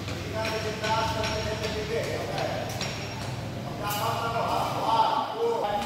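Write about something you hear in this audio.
Children chatter and call out in a large echoing hall.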